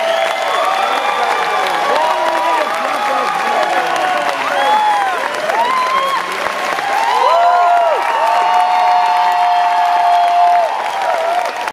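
A large crowd cheers and screams loudly in an echoing hall.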